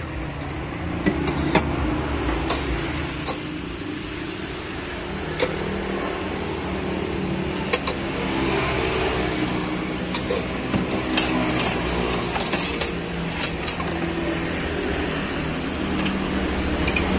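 Utensils clink against a bowl and jars.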